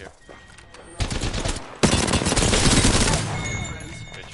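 A rifle fires rapid bursts of shots at close range.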